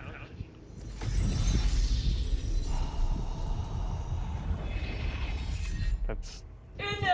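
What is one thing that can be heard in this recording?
A magical blast rumbles deeply and hums.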